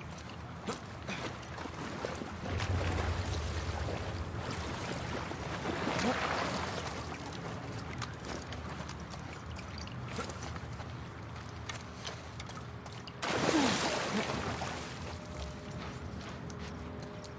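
Footsteps crunch slowly over debris and broken glass.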